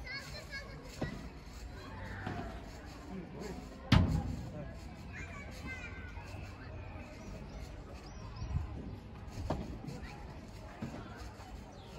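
Padel rackets strike a ball with sharp pops, outdoors.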